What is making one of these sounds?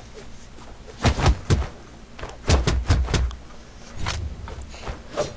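Game sound effects of blows and whooshes ring out in quick bursts.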